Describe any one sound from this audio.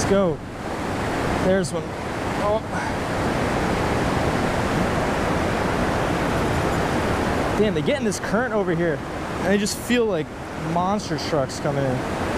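A fishing reel clicks as its handle is wound.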